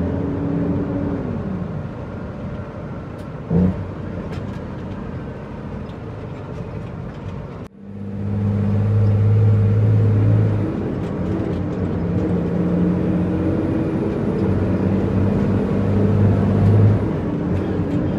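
A truck engine revs up and down as gears change.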